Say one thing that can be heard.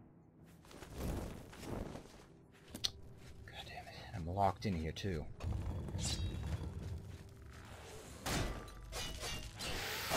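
A sword swings and strikes with a sharp clang.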